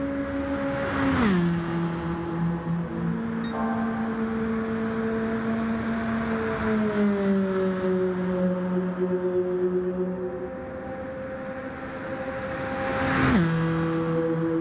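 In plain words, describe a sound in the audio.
A race car roars past up close with a sudden drop in pitch.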